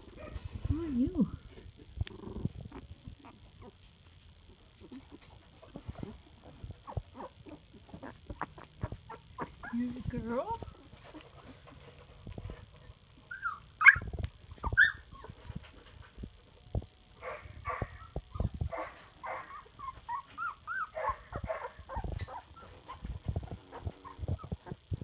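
Puppies shuffle and rustle on a soft bed.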